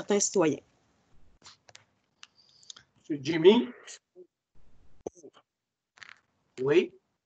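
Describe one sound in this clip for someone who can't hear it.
A young woman speaks in short bursts over an online call.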